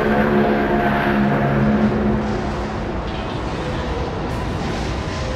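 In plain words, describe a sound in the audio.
Ship engines rumble low and steady.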